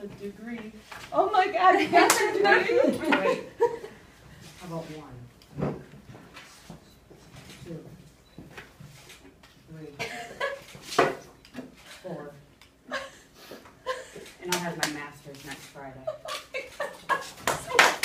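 A middle-aged woman exclaims with excitement and emotion.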